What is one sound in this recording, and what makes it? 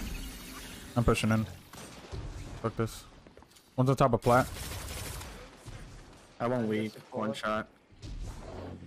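Gunshots crack and boom.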